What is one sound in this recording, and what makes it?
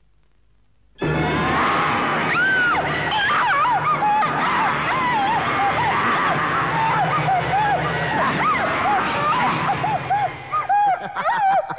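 A young woman screams in fright.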